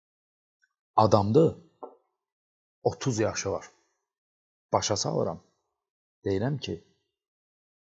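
A man speaks with animation in short bursts, close to a microphone, with pauses between them.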